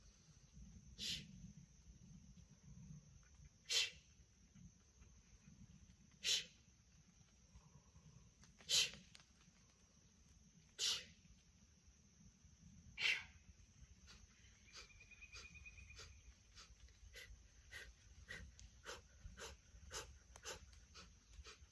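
A squeaky toy squeaks sharply, again and again, faster towards the end.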